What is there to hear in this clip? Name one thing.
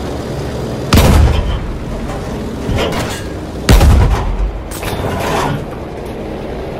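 Explosions boom loudly nearby.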